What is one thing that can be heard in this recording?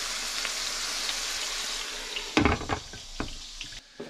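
A glass lid clinks onto a pan.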